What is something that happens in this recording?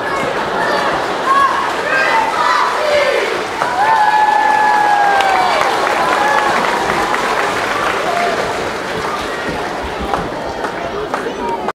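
A crowd of children chatters and shouts in a large echoing hall.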